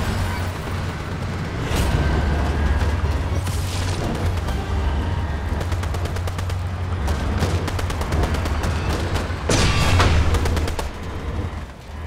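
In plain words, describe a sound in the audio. A heavy vehicle engine rumbles low and steadily.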